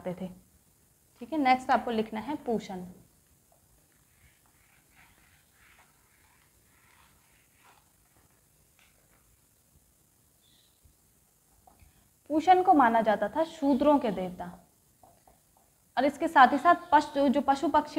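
A young woman speaks calmly and clearly nearby.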